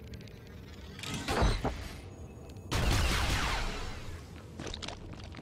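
Heavy blows and whooshes burst out during a fight.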